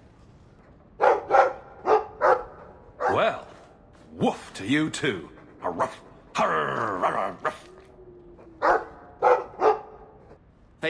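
A dog barks loudly nearby.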